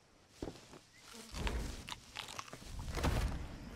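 Leafy plants rustle and swish as someone pushes through them.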